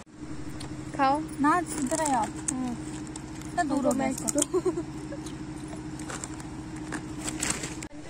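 A bag of chips crinkles as a hand reaches in.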